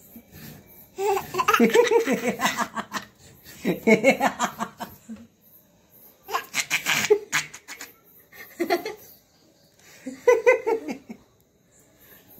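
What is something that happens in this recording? A young man laughs and talks playfully close by.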